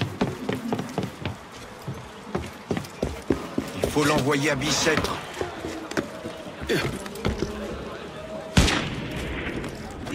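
Hands and boots scrape and thump while climbing a wall.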